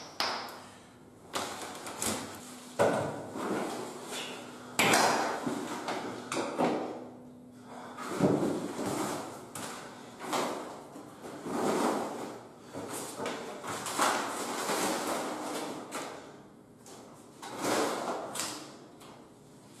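Paper and plastic rustle and crinkle close by.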